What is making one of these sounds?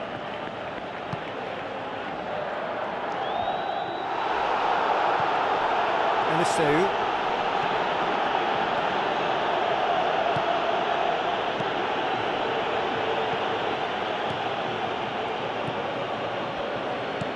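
A large stadium crowd roars steadily, swelling louder after a few seconds.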